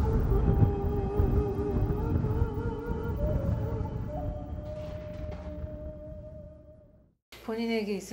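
Hand cymbals clash and ring out, slowly fading.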